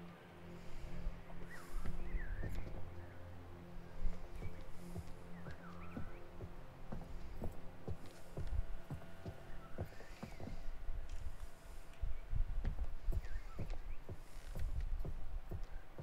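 Footsteps thud slowly across a floor.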